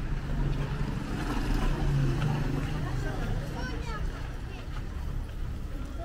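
A woman talks nearby outdoors.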